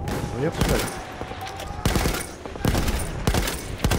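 A heavy machine gun fires loud bursts of shots nearby.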